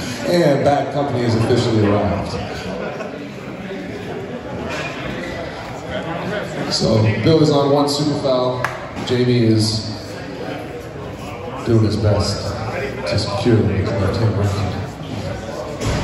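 A man speaks firmly and clearly nearby.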